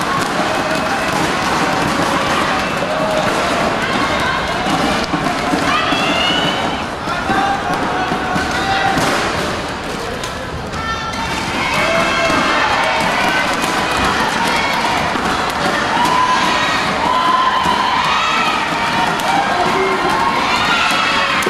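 A large crowd murmurs and shouts in an echoing hall.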